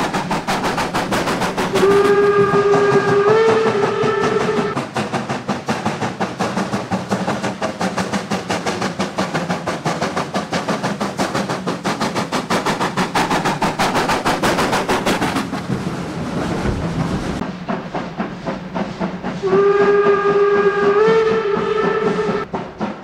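A steam locomotive chuffs rapidly and heavily.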